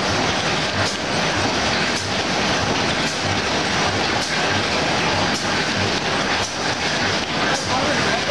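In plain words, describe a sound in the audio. Cardboard sheets slap and rustle as they come out of a machine.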